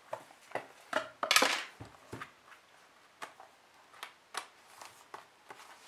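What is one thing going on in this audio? A box knocks and scrapes on a wooden table.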